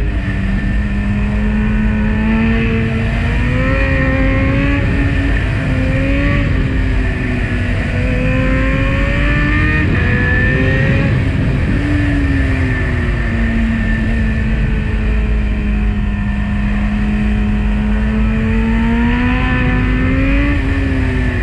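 A motorcycle engine hums steadily, rising and falling in pitch as it speeds up and slows down.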